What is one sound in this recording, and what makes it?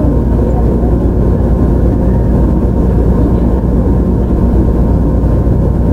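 An electric train rumbles steadily along the tracks nearby.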